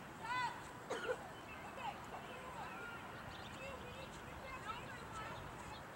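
Young women shout to each other across an open field in the distance.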